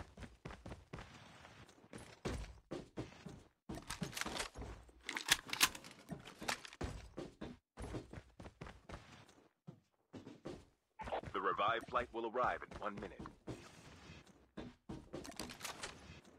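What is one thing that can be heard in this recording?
Footsteps thud quickly across wooden floors.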